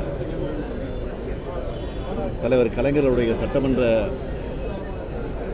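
A middle-aged man speaks firmly into microphones close by.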